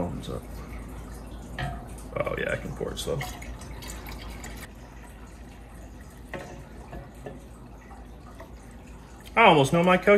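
Liquid pours from a glass jug into a stainless steel keg.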